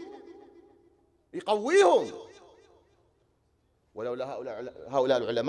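A man chants in a mournful voice over a loudspeaker in an echoing hall.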